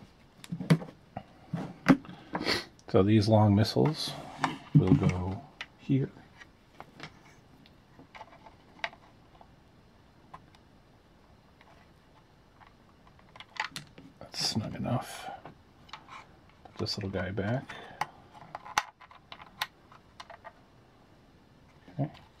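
Plastic pieces click and rattle as hands handle them.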